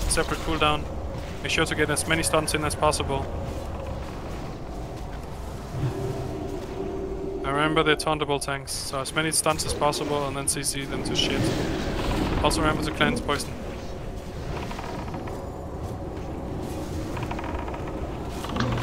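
Magic spells whoosh and crackle in a busy fantasy battle.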